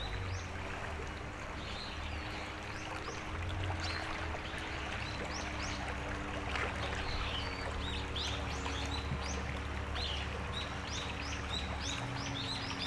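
A shallow stream babbles and trickles over stones.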